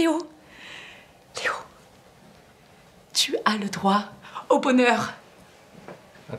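A woman speaks excitedly and close by.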